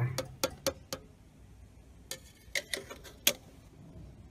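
A metal drawer clanks and rattles as it is pried open.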